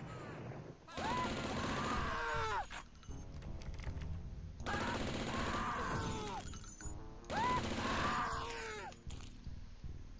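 A gun fires rapid bursts of loud shots.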